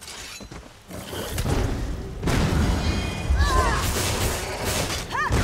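Magic spells crackle and blast loudly in a fight.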